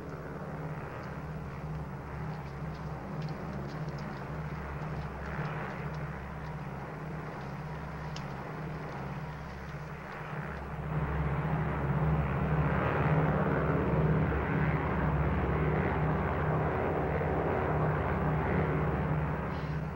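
Airplane engines drone steadily, growing louder partway through.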